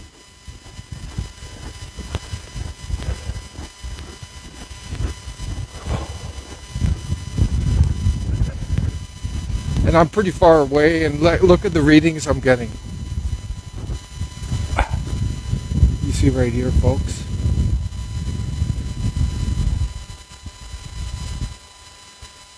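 Wind gusts and rumbles across the microphone outdoors.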